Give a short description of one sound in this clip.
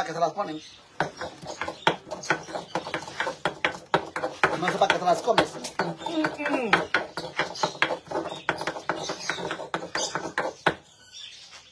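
A stone pestle grinds and knocks in a stone mortar.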